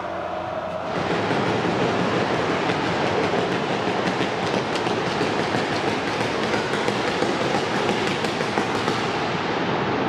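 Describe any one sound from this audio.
Fireworks crackle and hiss loudly nearby.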